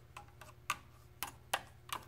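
A small tool taps against metal.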